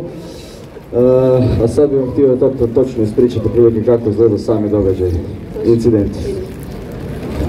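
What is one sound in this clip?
A man speaks loudly through a loudspeaker outdoors.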